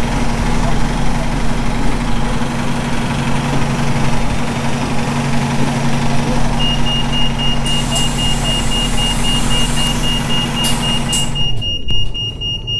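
A bus engine idles with a low, steady hum.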